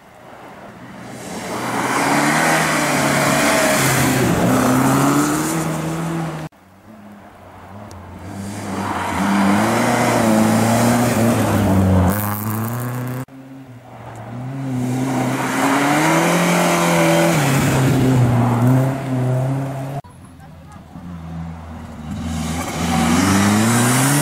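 Rally car engines roar loudly as cars approach and speed past one after another, revving hard.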